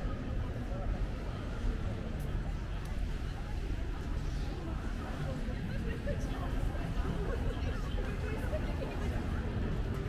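A crowd of people murmurs in the distance.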